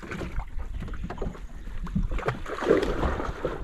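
Water laps gently against a boat's hull.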